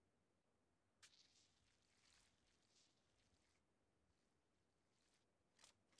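Cloth rustles and tears as a bandage is applied.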